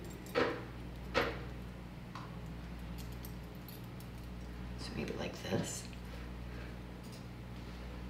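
Metal rings clink softly against each other as they slide onto a finger.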